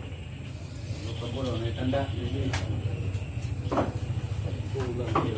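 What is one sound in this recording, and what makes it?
Men chat nearby.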